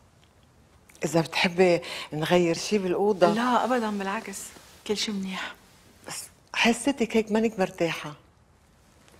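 An elderly woman speaks with animation nearby.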